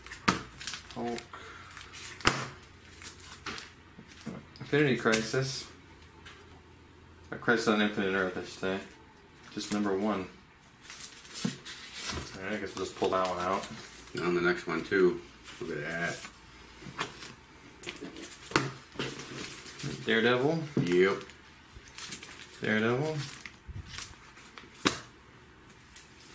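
Plastic sleeves crinkle and rustle as comic books are handled.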